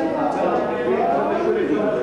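A middle-aged woman laughs loudly.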